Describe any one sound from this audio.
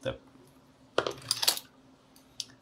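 A screwdriver is set down on a table with a light clatter.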